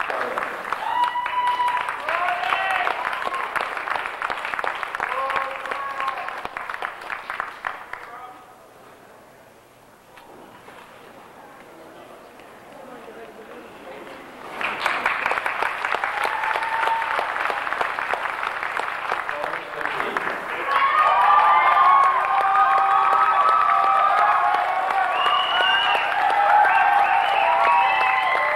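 Someone in a crowd whistles shrilly.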